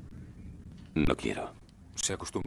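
A young man speaks in a low voice nearby.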